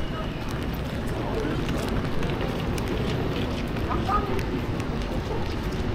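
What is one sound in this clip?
Footsteps splash on a wet street.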